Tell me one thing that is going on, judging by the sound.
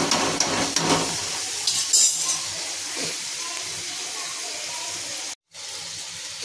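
Food sizzles and bubbles gently in a hot pan.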